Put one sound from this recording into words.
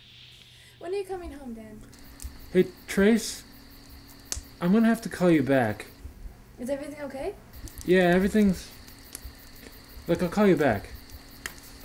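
A young man talks into a phone calmly.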